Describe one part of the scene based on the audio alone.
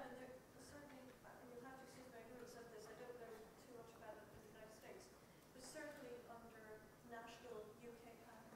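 A woman speaks steadily through a microphone in a large hall.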